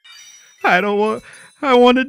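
A bright chime sparkles in a video game.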